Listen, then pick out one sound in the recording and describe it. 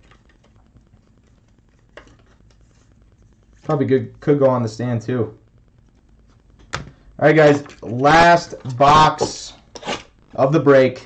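Trading cards slide and rustle softly in hands.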